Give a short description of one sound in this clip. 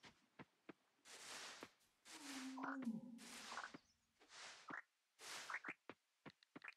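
Tall grass rustles in short swishing bursts as it is cut.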